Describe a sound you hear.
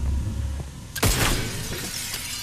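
A gun fires a single loud blast.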